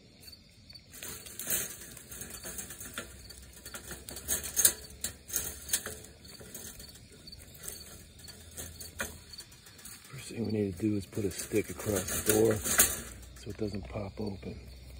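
Leaves and twigs rustle and crackle close by.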